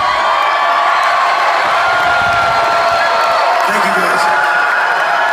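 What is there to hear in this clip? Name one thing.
Loud live music plays through large speakers.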